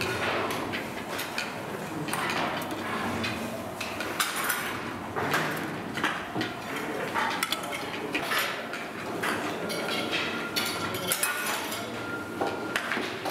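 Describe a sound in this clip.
Metal trays clatter and knock against a steel table in an echoing room.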